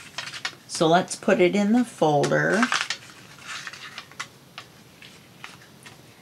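A plastic sheet rustles as it is handled.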